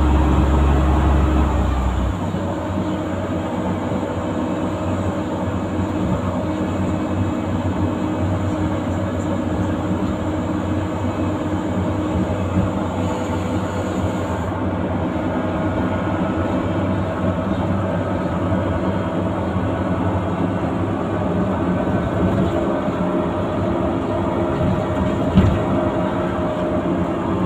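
A bus engine drones steadily while driving.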